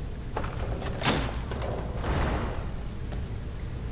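A metal lever clanks as it is pulled.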